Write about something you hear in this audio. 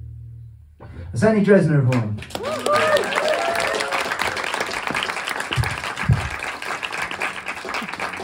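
A man plays an acoustic guitar.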